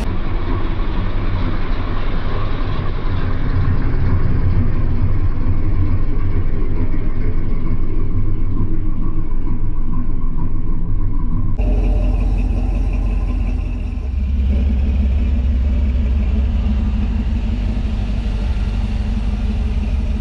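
A car engine idles nearby with a deep, throbbing exhaust rumble.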